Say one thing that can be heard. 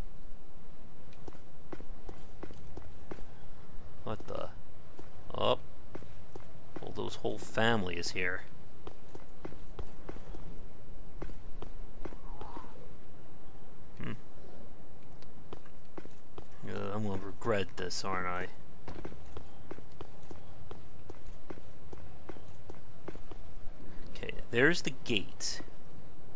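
Armoured footsteps clank quickly on stone tiles.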